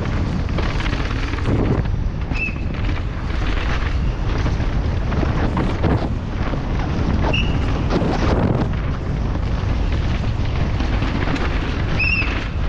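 A bike's frame and chain rattle over bumps.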